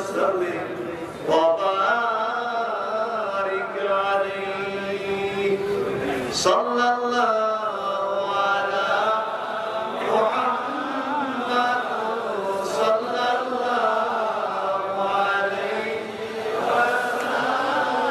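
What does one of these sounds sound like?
A man chants in a loud, wailing, sung voice through a microphone and loudspeakers.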